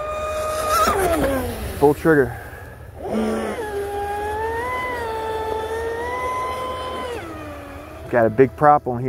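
A small motor whines at high speed and fades as a model boat races across the water.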